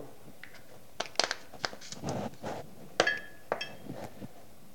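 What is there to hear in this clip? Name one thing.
A salt shaker rattles as salt is shaken out.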